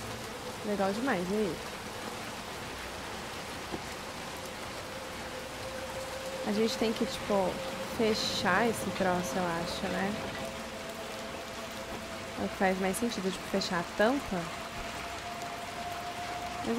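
Rain pours steadily.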